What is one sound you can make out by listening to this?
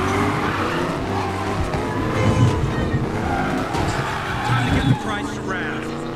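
Tyres screech as a car drifts around a corner.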